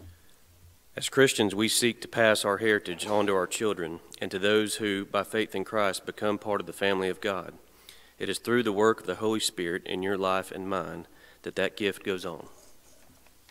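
A young man reads out calmly into a microphone in a hall with some echo.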